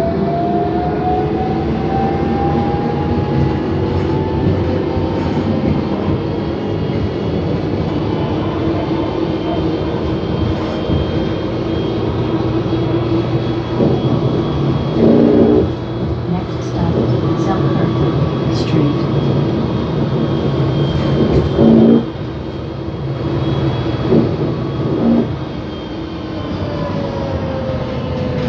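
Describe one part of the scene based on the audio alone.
A bus engine hums and rumbles steadily from inside.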